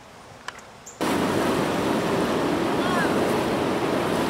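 A man wades through shallow water with splashing steps.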